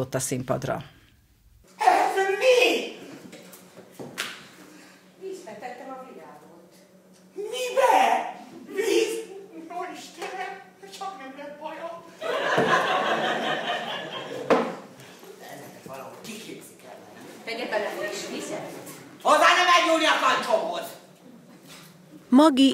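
An elderly woman talks and exclaims with animation.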